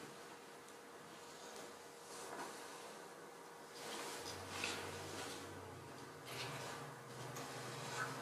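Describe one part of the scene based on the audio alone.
Heavy fabric rustles and shifts on the floor.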